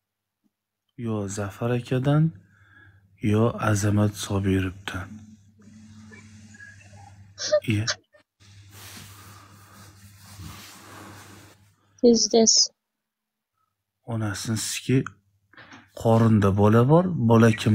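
A man talks casually, close up through a phone microphone.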